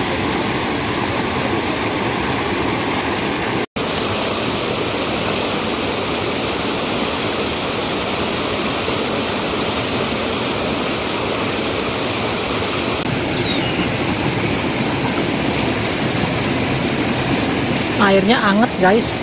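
Water rushes and splashes steadily over rocks in a small stream.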